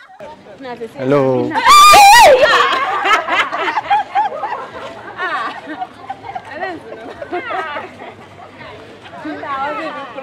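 A woman shouts and screams with excitement close by.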